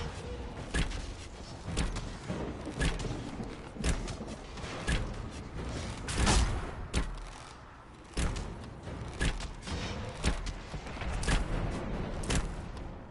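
Magic blasts crackle and burst in quick repeated bursts.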